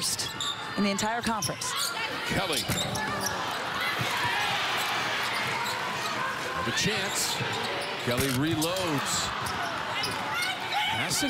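A large crowd murmurs and cheers in a big echoing arena.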